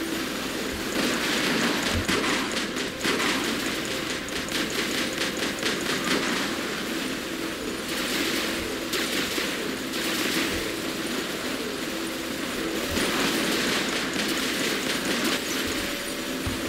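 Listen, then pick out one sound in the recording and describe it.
Heavy mechanical guns fire in rapid bursts.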